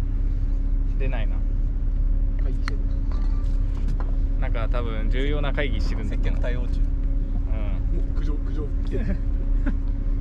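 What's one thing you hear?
A young man talks on a phone close by, calmly.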